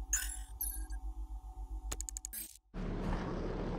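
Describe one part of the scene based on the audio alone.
Menu clicks tick in quick succession.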